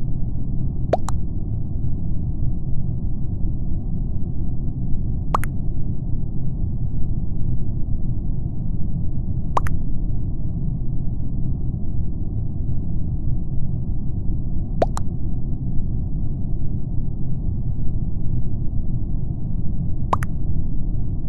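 A short electronic beep sounds now and then as chat messages arrive.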